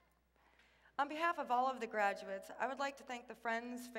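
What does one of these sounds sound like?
A young woman sings into a microphone in a large echoing hall.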